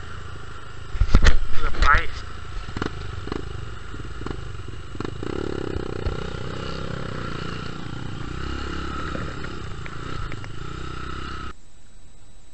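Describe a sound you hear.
Tall grass brushes and rustles against a moving dirt bike.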